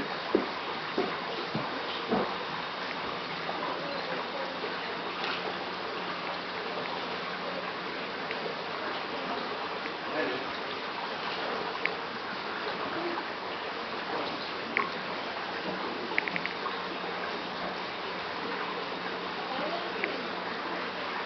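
Water bubbles and fizzes steadily from an air stream.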